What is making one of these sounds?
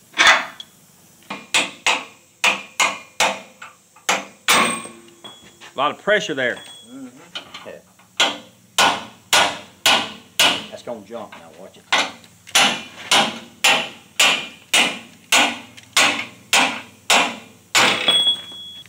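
A hammer strikes metal again and again with sharp ringing blows.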